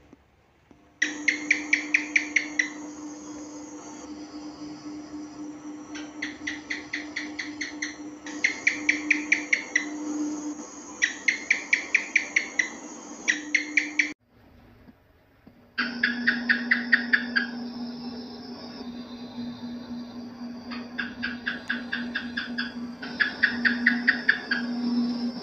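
Geckos chirp in quick bursts of clicking calls.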